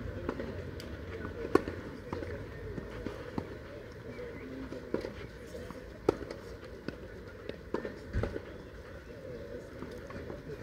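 A tennis ball bounces now and then on a clay court.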